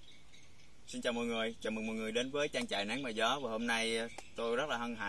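A young man speaks calmly, close to the microphone.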